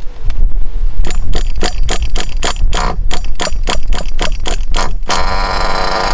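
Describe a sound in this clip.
A small engine's starter cranks in quick, rattling bursts.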